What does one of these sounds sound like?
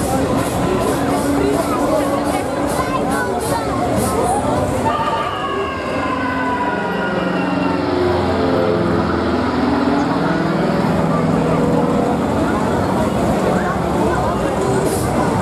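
A fairground ride's machinery whirs and hums as the arm swings.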